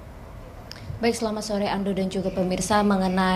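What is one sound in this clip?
A young woman speaks with animation through a microphone.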